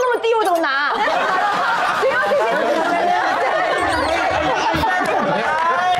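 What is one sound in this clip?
A crowd of people laughs and chatters.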